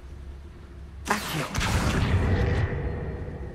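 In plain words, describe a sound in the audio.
A metal gate rattles and scrapes as it slides open.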